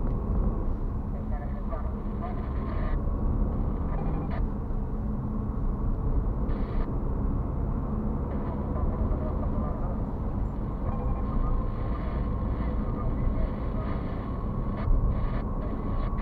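Tyres roar steadily on a highway road.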